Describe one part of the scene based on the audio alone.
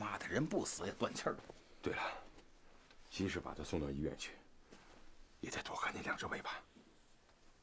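A middle-aged man speaks tensely and close by.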